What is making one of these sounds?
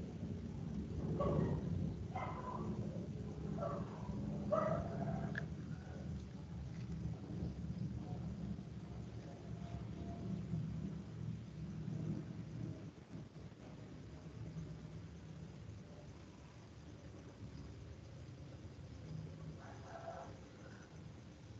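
A person speaks through an online call.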